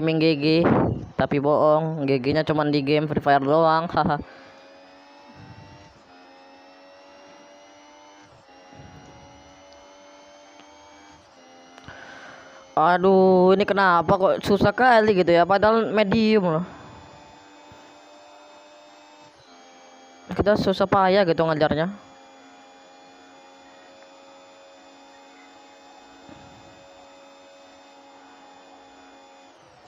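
A racing car engine whines steadily, rising in pitch as it speeds up.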